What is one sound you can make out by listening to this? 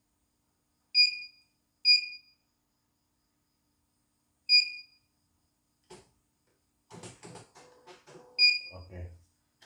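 A sewing machine beeps sharply as its buttons are pressed.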